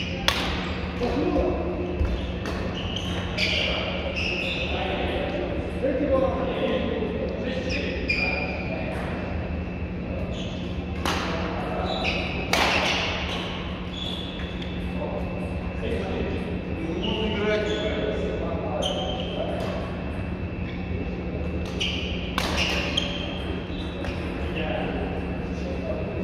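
Shuttlecocks are struck sharply with rackets, over and over, in a large echoing hall.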